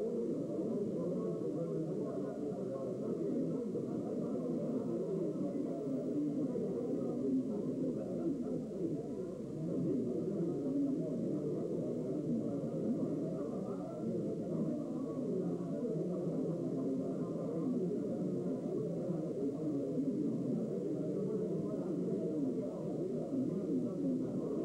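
Many elderly men chat at once in a crowded, echoing room.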